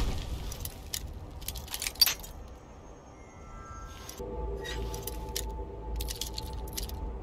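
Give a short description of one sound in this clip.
A metal lockpick scrapes and clicks inside a lock.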